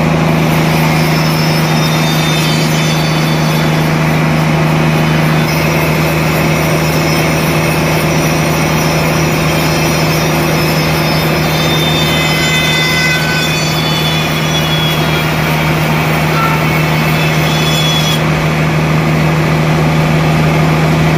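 Machinery hums steadily.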